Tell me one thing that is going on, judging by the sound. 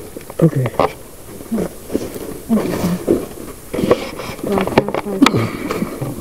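An animal makes short, low cries close by.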